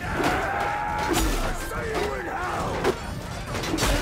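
A wooden gate splinters and crashes apart.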